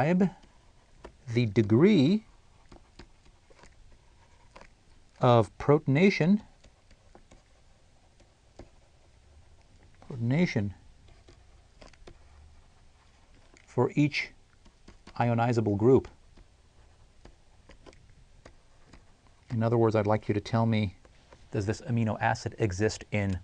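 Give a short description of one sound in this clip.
A middle-aged man speaks calmly into a close microphone, with long pauses.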